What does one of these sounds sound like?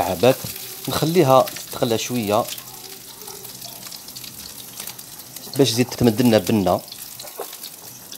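Food sizzles softly in hot oil.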